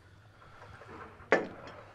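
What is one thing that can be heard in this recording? A porcelain cup clinks onto a saucer.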